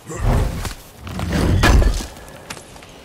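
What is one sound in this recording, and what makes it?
A heavy chest lid creaks open.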